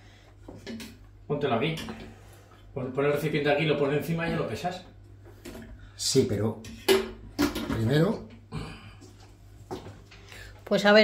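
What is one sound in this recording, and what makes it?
A pan clinks on a stovetop.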